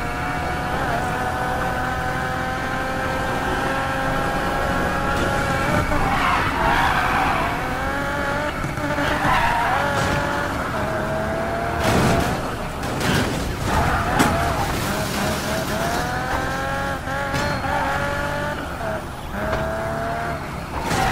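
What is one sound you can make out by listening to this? A sports car engine roars at high speed, its pitch rising and falling with gear changes.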